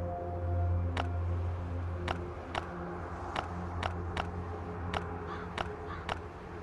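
Short soft clicks sound one after another as items are moved between slots.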